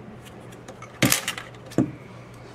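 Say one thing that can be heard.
Paper taps lightly on a table.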